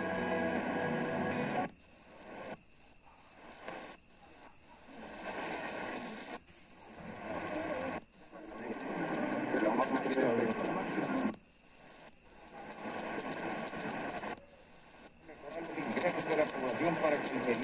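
A radio hisses and crackles with static as it tunes across stations.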